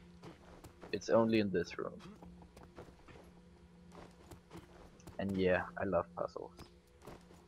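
A young man speaks into a close microphone with animation.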